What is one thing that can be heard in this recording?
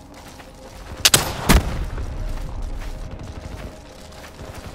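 A weapon fires a burst of flame with a loud roaring blast.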